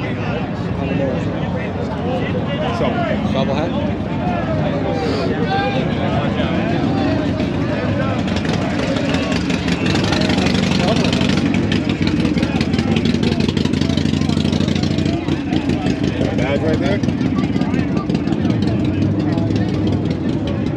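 A crowd of men and women chatters outdoors nearby.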